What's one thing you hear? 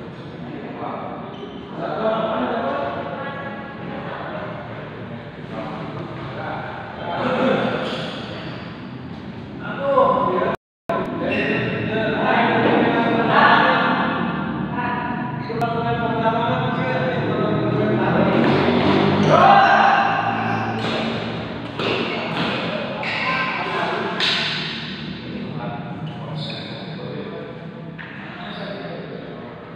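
Young men talk and call out in a large echoing hall.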